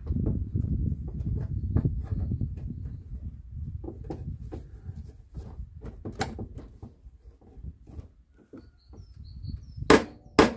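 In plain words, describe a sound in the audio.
A metal bar pries at a car's headlight, creaking and scraping.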